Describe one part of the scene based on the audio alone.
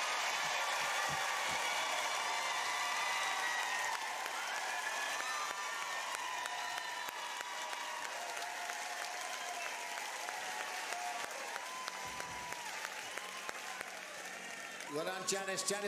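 A large crowd cheers and applauds loudly in a big hall.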